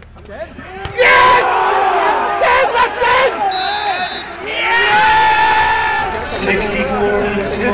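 A crowd cheers loudly outdoors.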